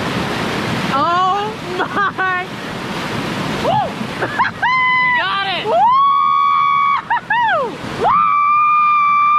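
A young man whoops and shouts excitedly close to the microphone.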